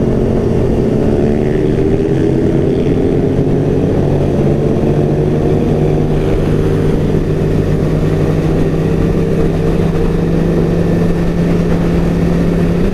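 Wind rushes past at speed.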